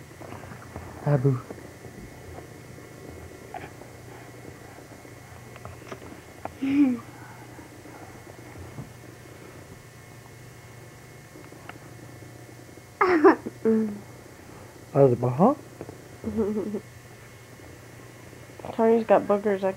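A young girl talks playfully close by, in short bursts.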